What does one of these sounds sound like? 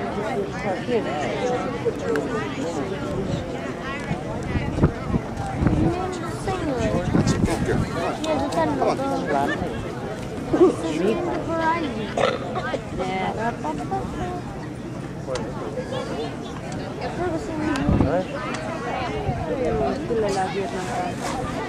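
A crowd of adults chatters steadily nearby outdoors.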